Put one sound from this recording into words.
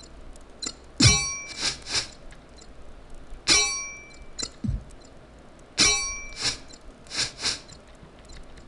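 Blades swing and strike with sharp metallic clangs.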